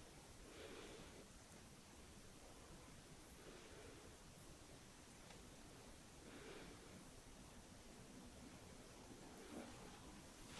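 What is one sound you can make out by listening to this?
Hands rub softly over skin.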